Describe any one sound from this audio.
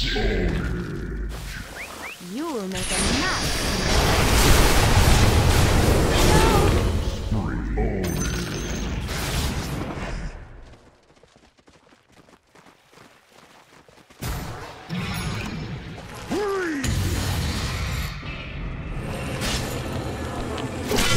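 Game fight effects crash and whoosh loudly.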